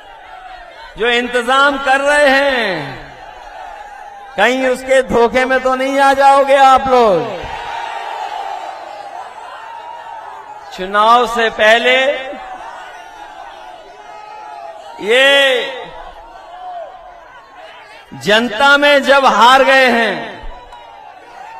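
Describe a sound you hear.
A man speaks forcefully into a microphone over loudspeakers, outdoors, in short shouted bursts.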